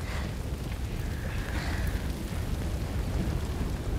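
A fire roars and crackles.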